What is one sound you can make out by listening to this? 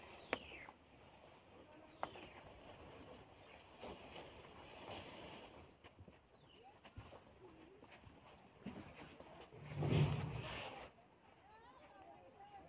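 Elephants' heavy feet thud and rustle through grass close by.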